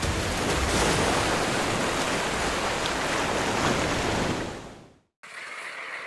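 Rough surf churns and crashes loudly.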